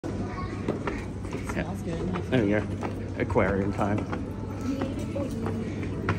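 Footsteps climb stairs and walk on a hard floor.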